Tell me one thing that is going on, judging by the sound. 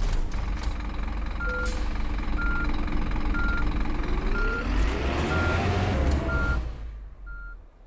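A bus engine hums and rumbles, rising in pitch as it speeds up.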